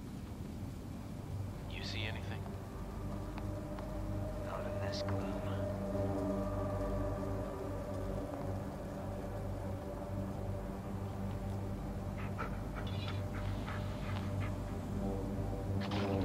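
A videotape plays with a low, steady electrical hum.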